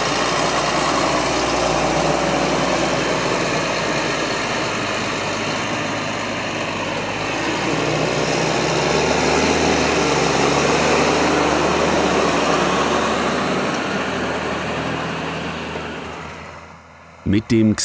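A heavy tractor engine rumbles and roars as it drives over soft soil.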